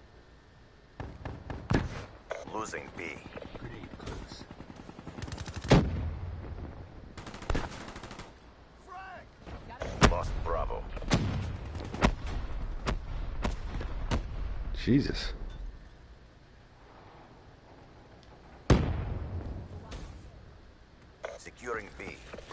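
A rifle fires in short bursts, with loud cracks and booms.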